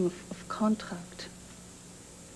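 A young woman speaks quietly up close.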